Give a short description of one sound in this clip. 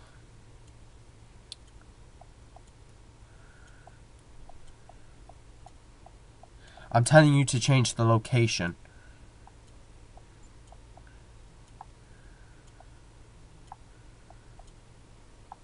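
Buttons click softly on a handheld game.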